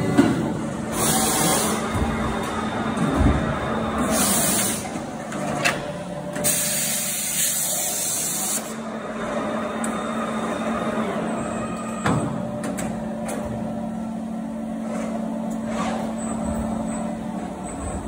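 A large industrial machine hums steadily.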